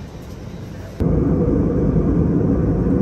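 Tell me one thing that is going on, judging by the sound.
A jet engine roars loudly in flight.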